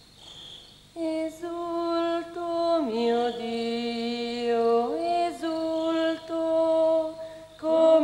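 A young woman sings softly and slowly, close by.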